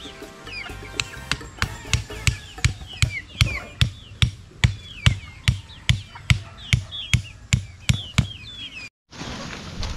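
A blade chops into soil with steady, rhythmic thuds.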